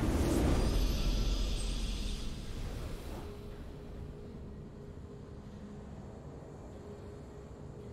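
A triumphant fanfare plays softly.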